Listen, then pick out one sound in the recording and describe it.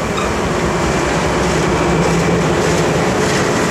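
A diesel locomotive engine drones as it approaches.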